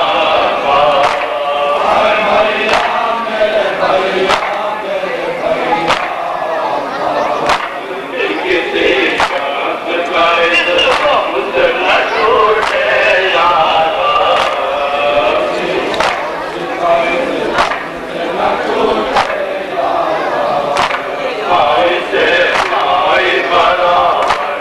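A large crowd of men chants and shouts loudly nearby.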